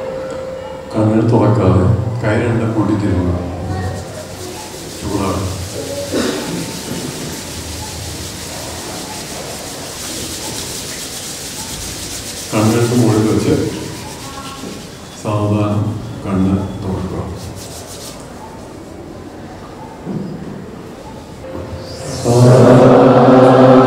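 A man speaks with animation through a microphone in a large hall.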